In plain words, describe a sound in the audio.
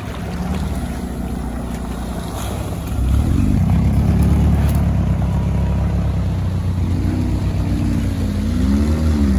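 An off-road vehicle's engine rumbles loudly and revs up and down.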